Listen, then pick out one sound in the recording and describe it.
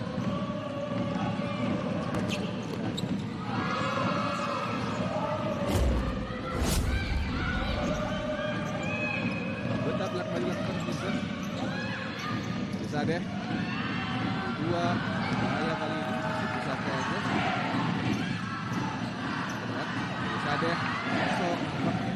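A crowd cheers and murmurs in a large echoing arena.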